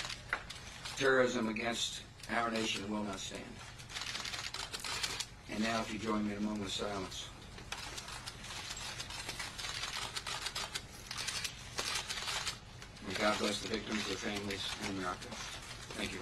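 A middle-aged man speaks solemnly through a microphone.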